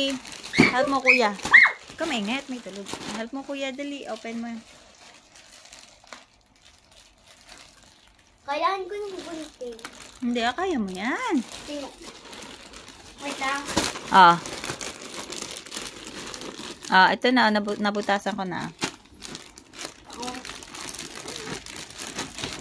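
Plastic wrapping crinkles and rustles as it is handled.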